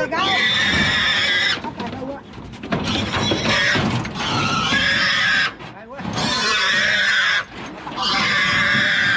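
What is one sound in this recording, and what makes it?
A pig squeals loudly in long shrill bursts.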